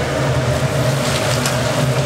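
Hot oil sizzles and bubbles in a deep fryer.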